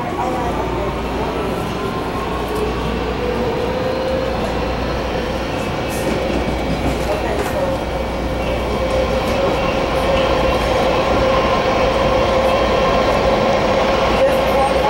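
A train's motor whines and rises in pitch as it speeds up.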